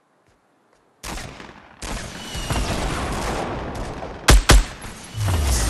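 Video game gunshots fire in sharp bursts.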